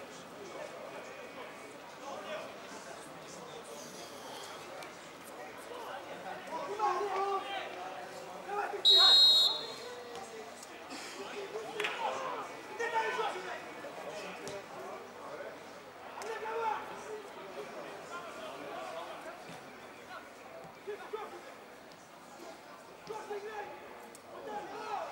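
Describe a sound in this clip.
Men shout from a distance across an open outdoor field.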